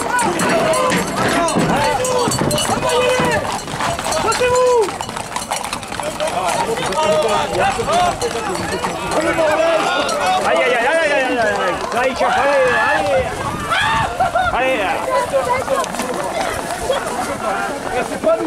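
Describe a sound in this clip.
Men shout and call out nearby.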